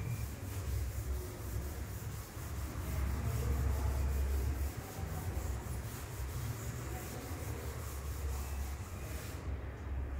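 A cloth rubs across a chalkboard.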